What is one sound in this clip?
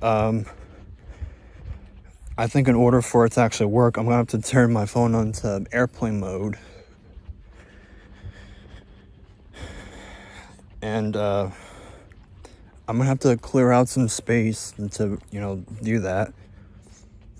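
A man talks with animation, very close to the microphone.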